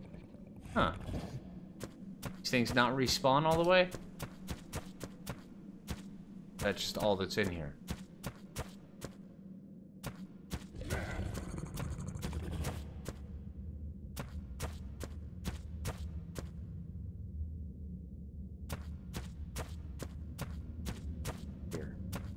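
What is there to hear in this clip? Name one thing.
A large creature's heavy footsteps thud along at a quick, steady pace.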